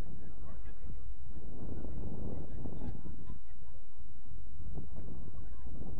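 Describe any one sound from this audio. Wind blows into a microphone outdoors.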